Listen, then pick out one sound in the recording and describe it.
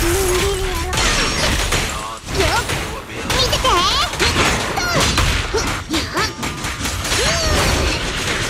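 Magic blasts burst and whoosh.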